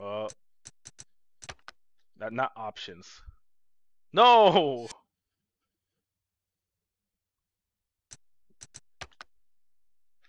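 Short game menu clicks tick several times.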